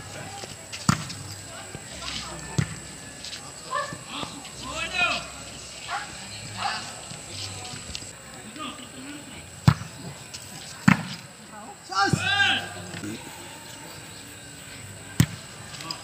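A ball is kicked with sharp thuds outdoors.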